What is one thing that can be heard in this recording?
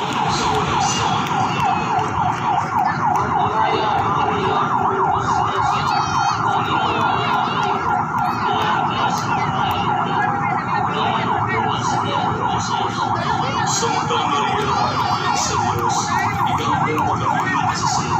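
Motorcycle engines rumble steadily as a procession rolls past.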